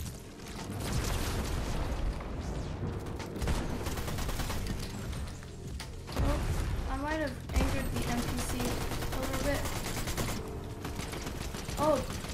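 Gunshots and blasts go off in a video game.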